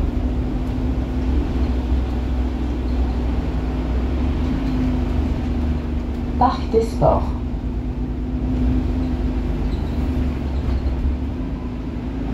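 The natural-gas engine of a city bus hums under way.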